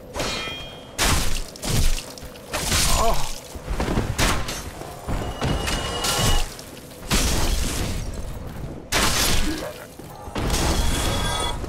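Swords clash and strike armour in a fight.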